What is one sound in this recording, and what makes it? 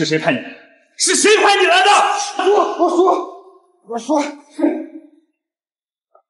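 A man pleads fast, repeating words in panic.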